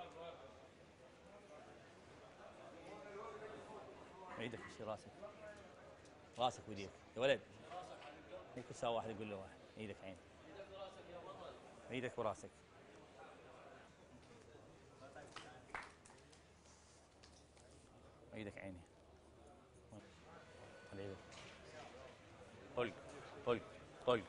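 A crowd of men murmurs in the background.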